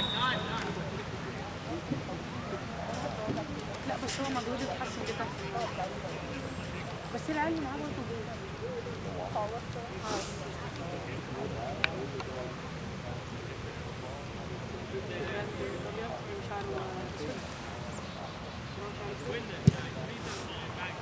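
Players shout to each other across an open field outdoors.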